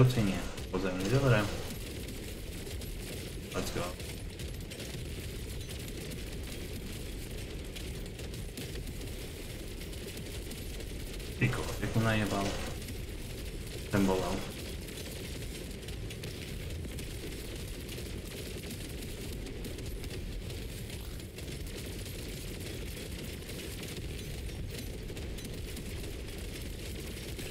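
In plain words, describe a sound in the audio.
Gunfire and blasts from a video game rattle on steadily.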